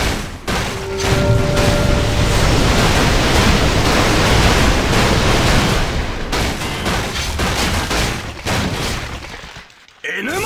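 Magic spells crackle and burst loudly.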